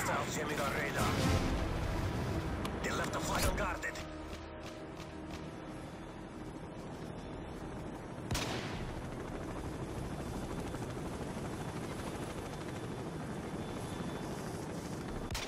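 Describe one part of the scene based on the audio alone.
A helicopter's rotor thrums steadily in the distance.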